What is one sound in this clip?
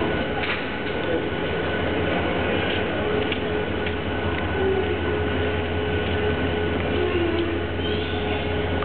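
A stationary train hums steadily in a large echoing hall.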